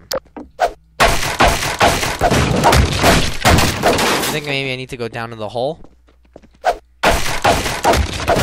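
A metal crowbar smashes and splinters wooden boards.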